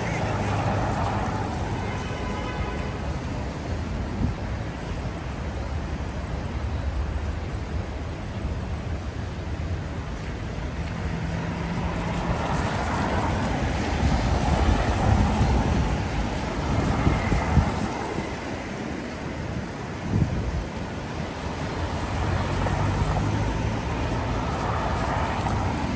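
Cars pass close by, tyres hissing on wet road.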